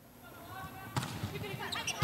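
A volleyball is struck hard with a sharp slap.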